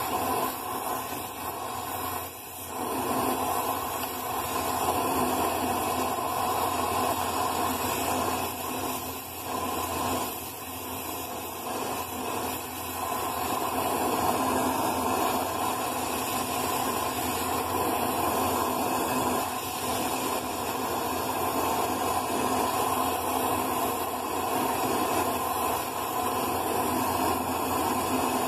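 An arc welder crackles and hisses steadily close by.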